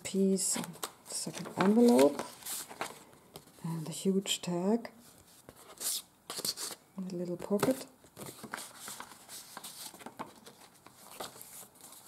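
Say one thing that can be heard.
Paper rustles and crinkles as pages are handled close by.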